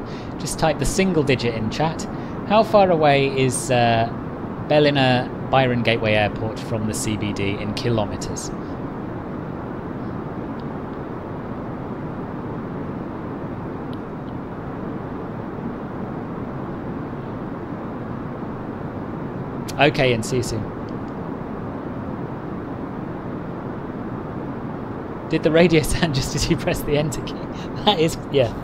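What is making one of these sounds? A jet airliner's engines drone steadily in flight.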